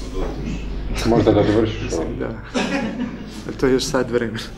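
A small audience of men and women laughs.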